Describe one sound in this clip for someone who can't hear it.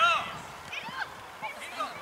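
A ball thuds as a child kicks it.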